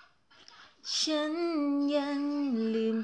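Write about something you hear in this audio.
A young woman sings softly and close by.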